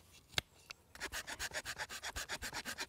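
A small saw rasps quickly back and forth through a wooden stick.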